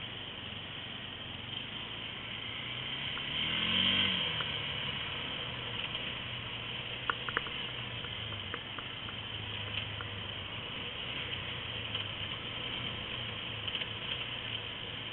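A quad bike engine drones as it rides along a gravel track.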